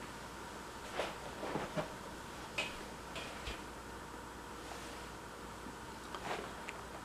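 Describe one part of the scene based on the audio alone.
A fabric case rustles as it is handled.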